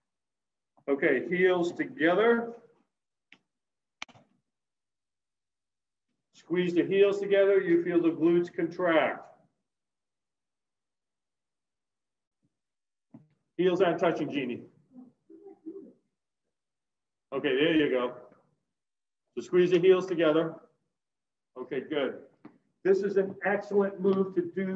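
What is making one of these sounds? A man speaks in short bursts with pauses between them.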